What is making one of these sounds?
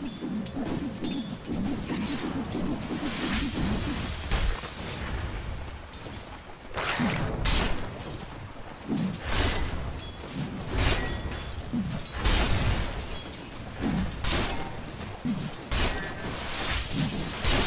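Game spells and weapons clash with bursts of impacts and whooshes.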